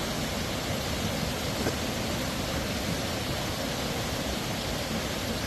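A muddy flood river rushes and roars loudly over rocks.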